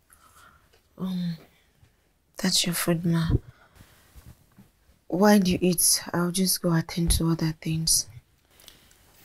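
A young woman speaks quietly and calmly nearby.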